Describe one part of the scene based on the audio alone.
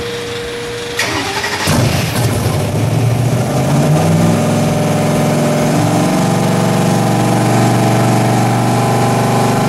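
A car engine revs loudly.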